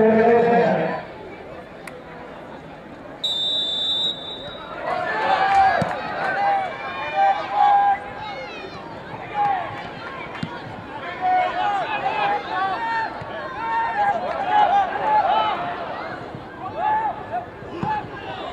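Spectators murmur and call out from the stands.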